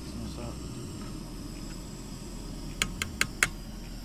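A gas burner hisses steadily.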